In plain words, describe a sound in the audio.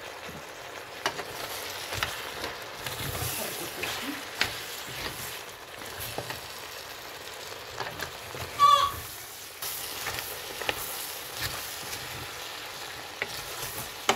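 Food rustles and scrapes as a hand stirs it in a metal pot.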